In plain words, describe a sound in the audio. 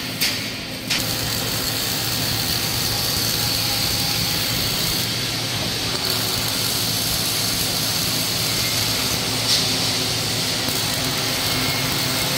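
A robotic MIG welding arc crackles and hisses.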